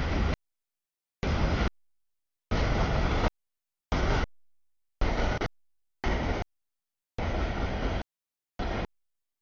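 A freight train rumbles and clatters past.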